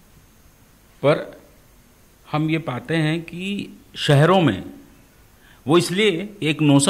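A middle-aged man speaks calmly and thoughtfully into a close microphone, with pauses.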